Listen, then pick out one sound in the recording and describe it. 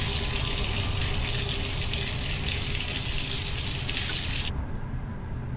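Water pours steadily from a tap into a tub.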